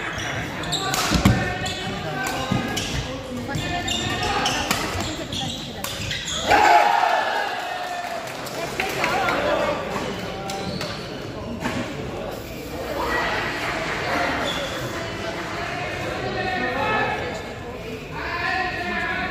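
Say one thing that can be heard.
Men and women chat nearby in a large echoing hall.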